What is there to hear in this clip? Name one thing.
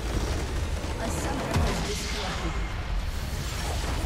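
A huge structure explodes with a deep, rumbling blast.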